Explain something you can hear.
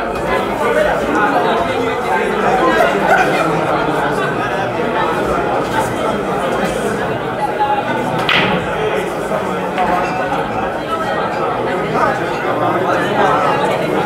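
A crowd of young men chatters loudly nearby.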